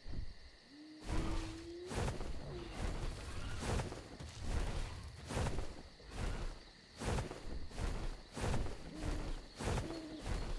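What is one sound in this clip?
Large wings beat with repeated heavy whooshes.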